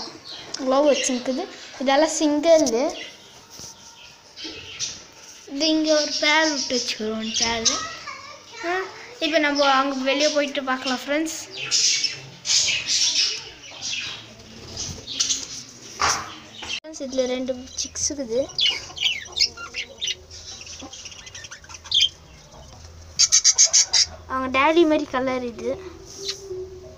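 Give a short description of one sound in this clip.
A budgie chirps and twitters close by.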